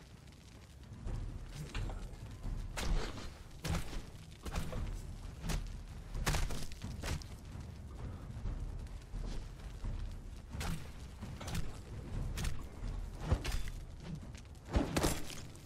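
Weapons strike and clash in a fight, again and again.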